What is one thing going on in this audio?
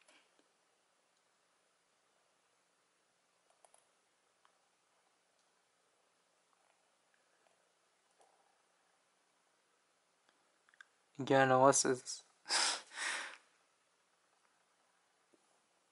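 Small metal pieces click softly between fingers.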